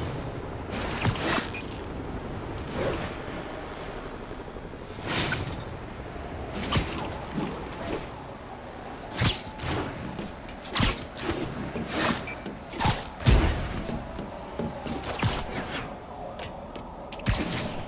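Web lines shoot and snap with sharp whooshes, again and again.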